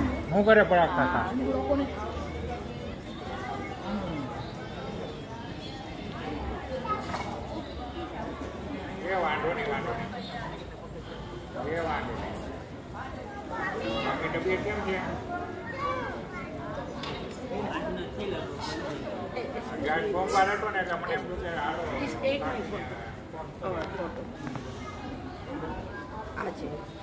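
Voices of men and women murmur and chatter nearby.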